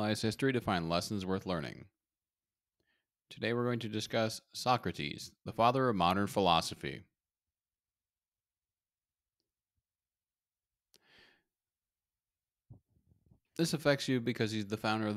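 A young man speaks calmly and closely into a microphone, with pauses.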